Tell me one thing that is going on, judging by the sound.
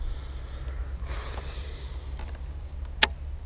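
A fishing reel whirs as line spools off.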